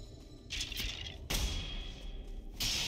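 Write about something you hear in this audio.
A burst of fire whooshes.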